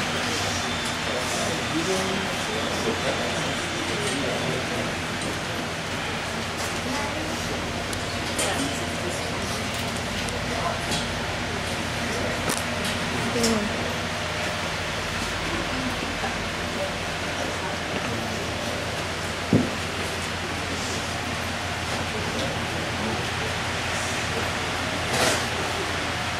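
A crowd of people murmurs quietly nearby.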